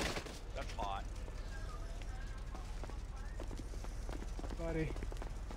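Footsteps tap on a paved street.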